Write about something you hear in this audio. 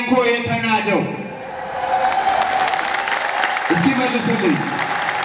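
A man speaks with animation into a microphone, heard through loudspeakers in a large echoing hall.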